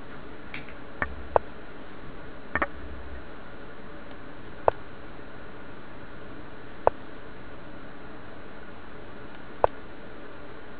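Short sharp clicks sound now and then as chess moves are made.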